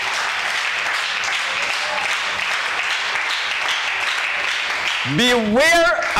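A group of people claps their hands.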